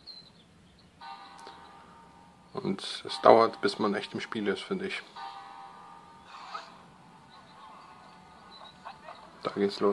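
A handheld game console plays game music and sound effects.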